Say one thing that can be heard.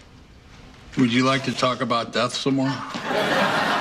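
An older man speaks with a gruff, animated voice.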